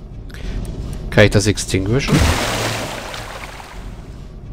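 A magic spell bursts with a shimmering, crackling whoosh.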